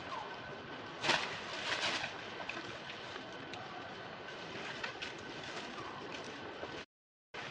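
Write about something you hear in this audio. Dry leaves rustle as a monkey shifts on the forest floor.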